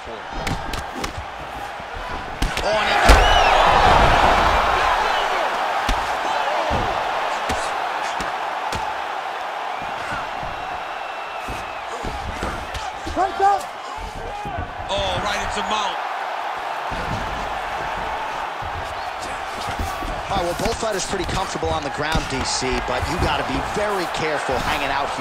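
A large crowd roars and cheers in a big arena.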